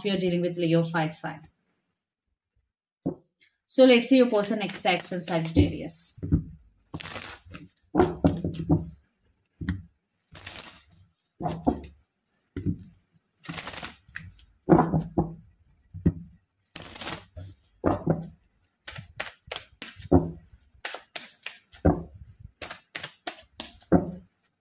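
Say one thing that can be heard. Cards shuffle and slap together in hands.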